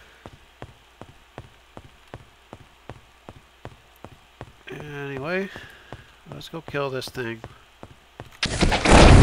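Footsteps thud steadily on stone.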